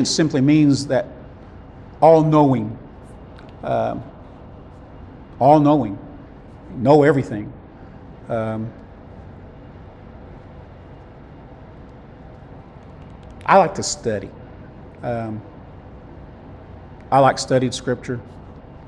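A middle-aged man speaks calmly into a clip-on microphone, in short phrases with pauses.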